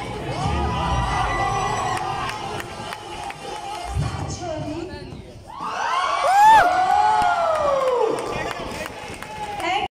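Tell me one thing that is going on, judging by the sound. Dancers' feet thump and shuffle on a stage.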